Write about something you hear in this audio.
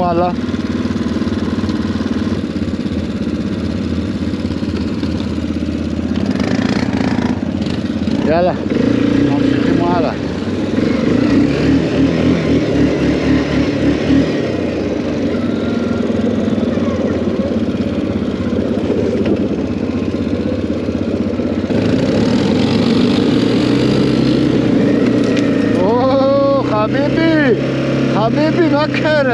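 A quad bike engine rumbles steadily up close.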